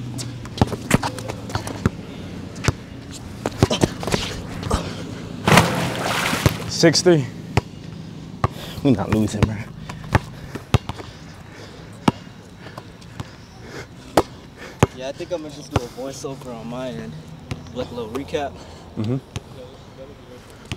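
A basketball bounces on an outdoor court in sharp, quick thumps.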